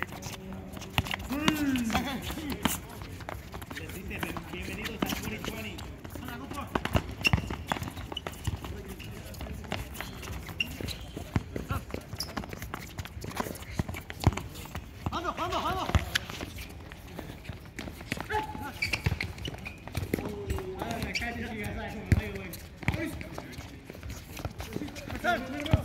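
A ball is kicked with sharp thuds on a hard court.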